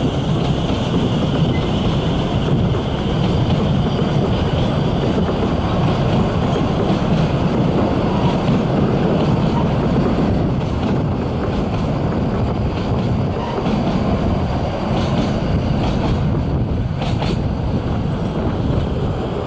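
A steam train rumbles and clatters past on the rails below.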